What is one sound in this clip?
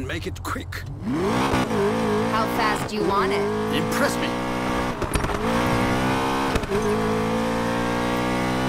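A sports car engine roars, revving higher as the car speeds up.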